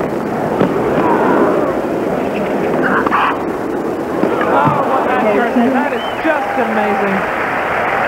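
A tennis ball is struck sharply by a racket, back and forth.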